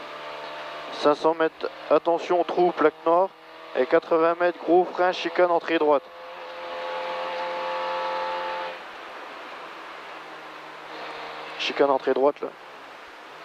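A man reads out rapid notes over a helmet intercom, close by.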